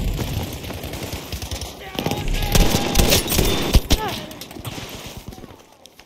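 A pump-action shotgun fires in loud blasts.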